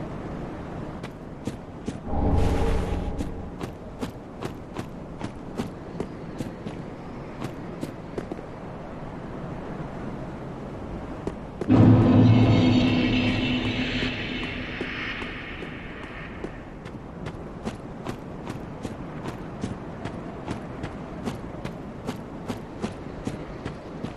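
Heavy armored footsteps clank steadily on stone.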